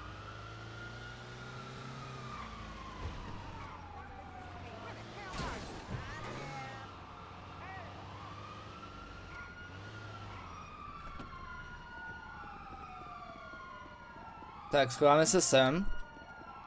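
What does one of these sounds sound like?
A siren wails, rising and falling.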